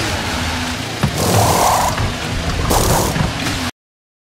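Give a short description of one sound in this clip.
Pit crew wheel guns whirr in short bursts.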